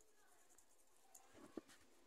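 Seeds patter lightly onto soft dough.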